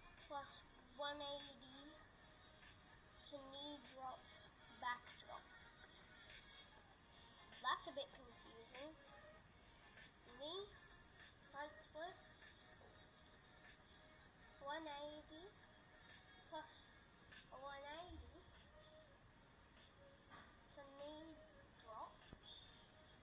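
A young boy talks with animation close by.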